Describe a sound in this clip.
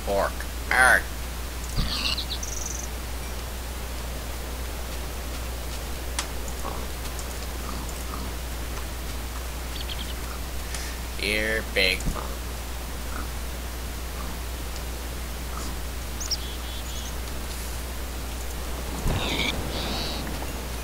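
A pig grunts and squeals in short bursts.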